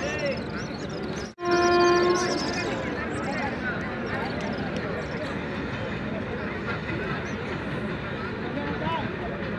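Young men talk and call out outdoors.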